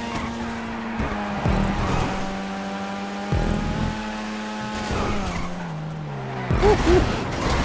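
A car's engine revs drop and rise as it shifts gears.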